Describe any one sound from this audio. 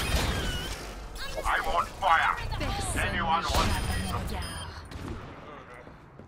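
Gunfire and blasts crackle in a video game, then fade away.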